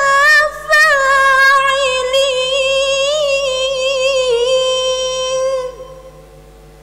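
A young woman chants in a long, melodic voice through a microphone, with echo.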